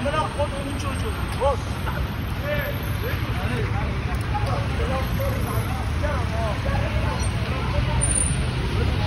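Men shout at each other on a busy street.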